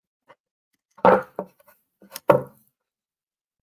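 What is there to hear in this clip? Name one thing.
A wooden board knocks and bumps against a table.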